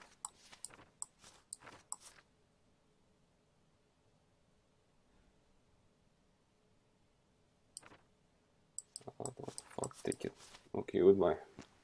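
Papers shuffle and click in short bursts.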